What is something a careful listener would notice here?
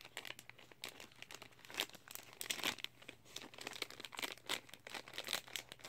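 A plastic food wrapper crinkles and rustles in someone's hands.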